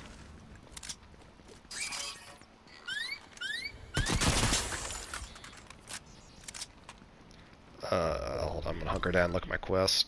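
Footsteps patter on hard ground as a game character runs.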